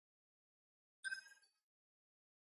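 A short electronic menu chime sounds.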